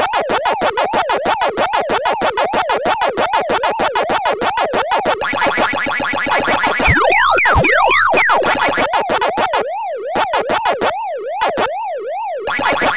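A game's electronic chomping blips repeat fast in a steady rhythm.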